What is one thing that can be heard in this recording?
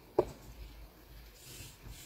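A pen scratches lightly on paper.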